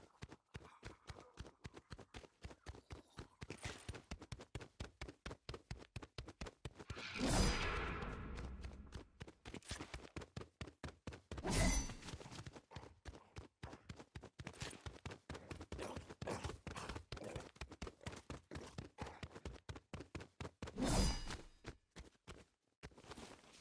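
Quick footsteps patter on a hard floor as a game character runs.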